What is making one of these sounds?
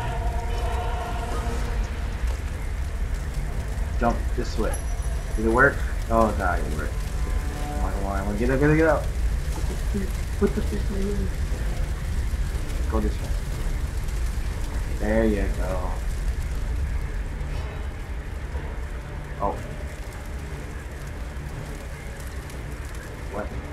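Fire roars and crackles steadily all around.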